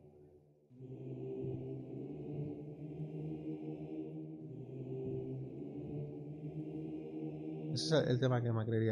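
A synthesizer plays a slow, sustained chord line.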